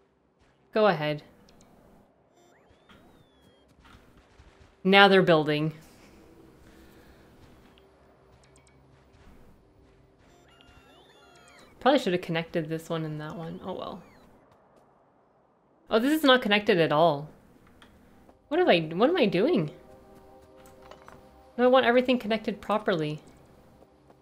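A young woman talks calmly in short bursts, close to a microphone.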